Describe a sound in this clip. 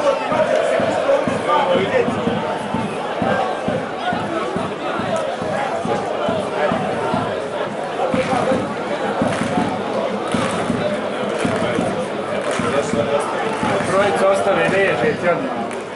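Players shout across an outdoor pitch.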